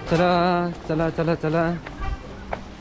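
A young man speaks loudly and close by.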